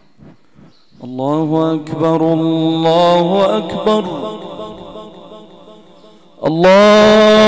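A young man chants in a long, drawn-out melodic voice through a microphone, heard over loudspeakers in a large echoing hall.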